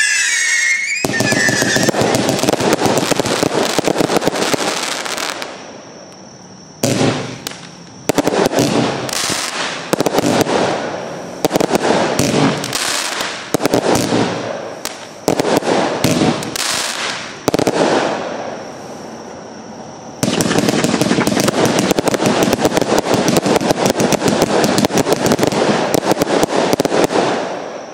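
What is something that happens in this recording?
A compound firework cake thumps as it fires shots into the sky.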